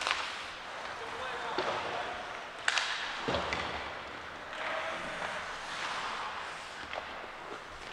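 Hockey sticks clack sharply against the puck in an echoing rink.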